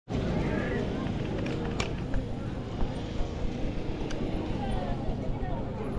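Bicycle tyres rattle and bump over cobblestones.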